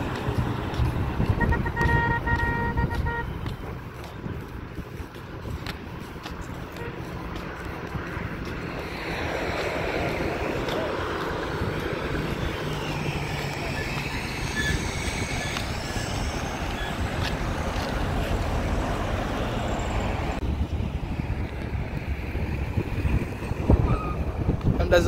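Traffic hums faintly along a road in the distance.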